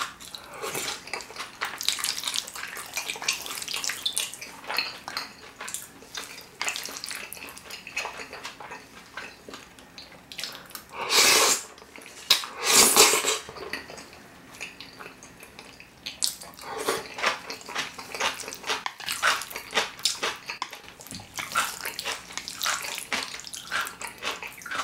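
A man chews food wetly and close up.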